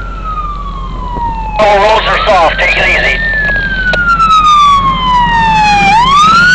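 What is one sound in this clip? A siren wails loudly, slowly falling and rising in pitch.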